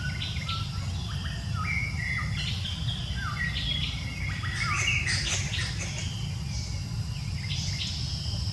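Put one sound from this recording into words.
Baby monkeys squeak and chirp close by.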